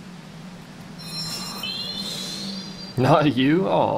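A magical spell shimmers and chimes with a rising tone.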